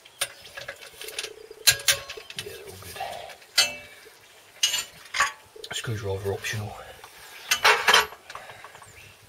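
Metal tools clink and knock against a clutch cover.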